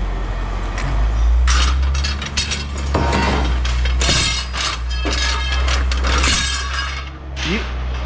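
Metal rails clank and rattle as they are dropped onto a wooden trailer bed.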